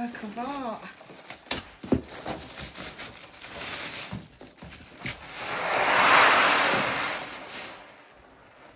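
Plastic wrapping crinkles and rustles as it is pulled off a drum.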